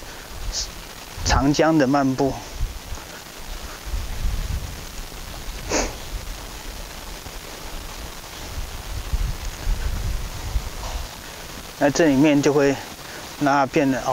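A horse trots on soft sand with muffled hoofbeats.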